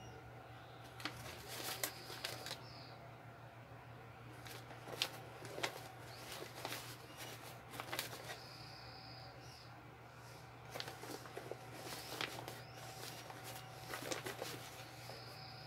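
Plastic crinkles and rattles as items are pressed into a soft organizer.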